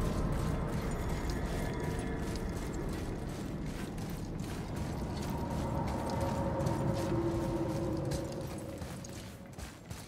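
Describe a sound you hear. Wind blows steadily with a low rushing roar.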